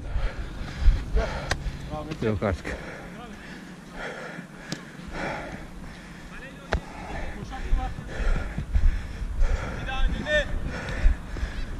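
Men shout to each other across an open pitch.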